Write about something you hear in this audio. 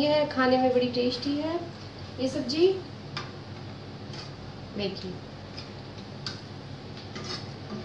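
A metal ladle scrapes and clinks against a pan.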